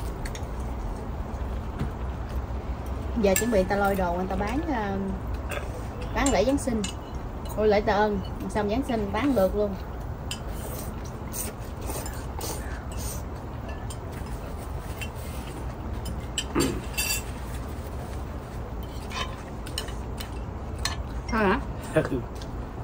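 Chopsticks and spoons clink against bowls.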